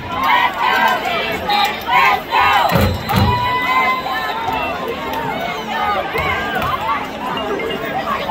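A large crowd of spectators shouts and cheers outdoors.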